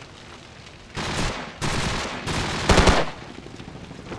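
Bursts of rifle fire crack loudly nearby.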